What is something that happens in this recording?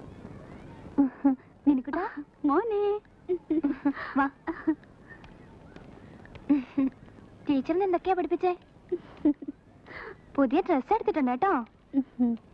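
A woman speaks warmly and close by.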